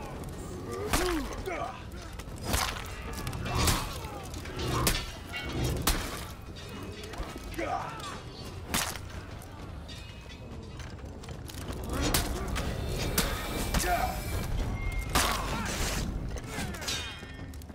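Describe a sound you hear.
Warriors grunt and shout as they fight.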